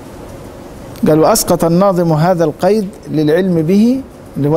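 A middle-aged man recites in a melodic, chanting voice close to a microphone.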